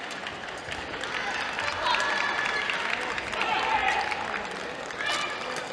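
Sneakers squeak now and then on a hard court floor in a large echoing hall.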